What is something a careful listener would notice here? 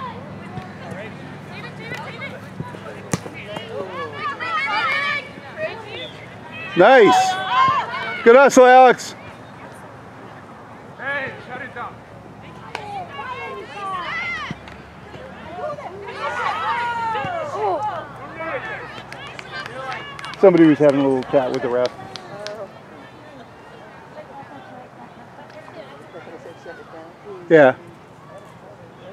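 Women shout and cheer from a distance outdoors.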